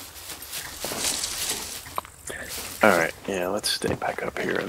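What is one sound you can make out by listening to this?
Leaves rustle as someone pushes through bushes.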